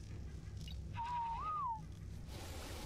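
A short whistle rises and falls.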